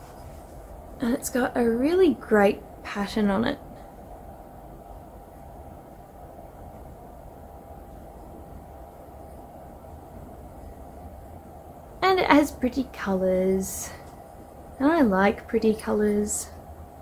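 A young woman speaks calmly and close by, in short bursts with long pauses.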